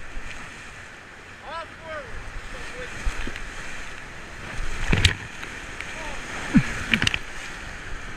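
Whitewater rapids roar steadily.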